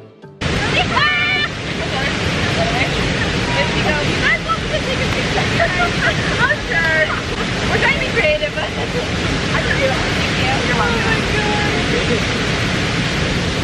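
Young women talk and laugh with animation.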